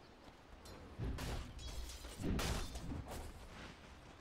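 Fantasy battle sound effects burst and crash in short loud blasts.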